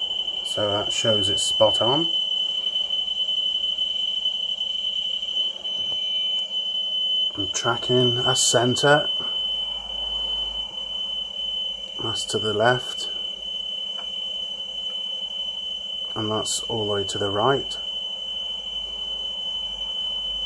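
A steady, high-pitched test tone sounds from a television speaker.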